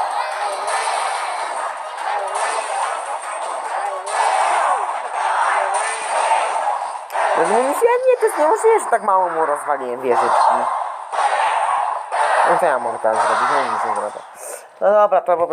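Small cartoon fighters clash and thud in a battle.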